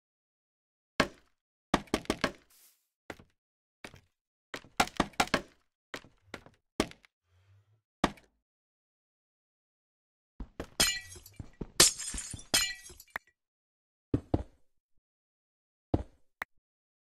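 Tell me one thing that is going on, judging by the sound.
Wooden blocks are placed with short, dull knocks.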